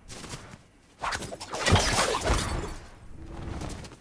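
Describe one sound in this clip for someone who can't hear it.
Leafy branches rustle loudly as something pushes through them.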